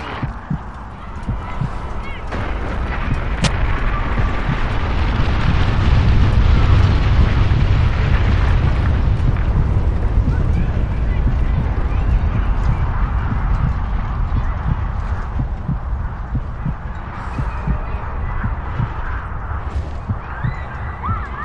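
A deep roaring wind from a blast sweeps past.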